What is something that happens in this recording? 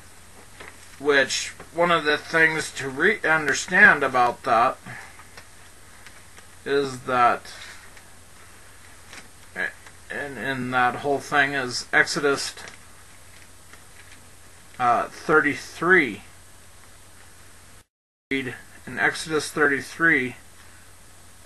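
A man speaks slowly and calmly into a close microphone, in short phrases with pauses.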